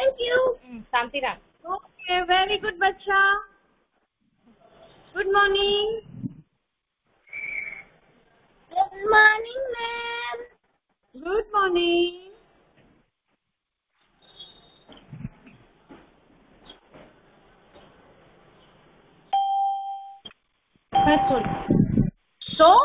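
A woman speaks with animation close to a phone's microphone.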